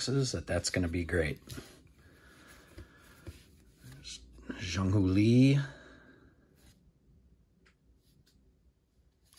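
Trading cards shuffle and rustle between fingers close by.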